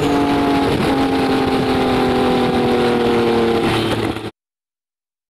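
A car engine roars loudly at high speed, shifting gear once and then falling in pitch.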